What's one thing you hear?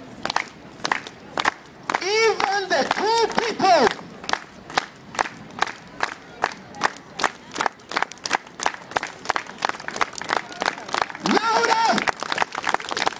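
A crowd claps in a steady rhythm.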